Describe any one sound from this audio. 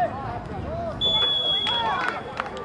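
A referee's whistle blows a short, sharp blast.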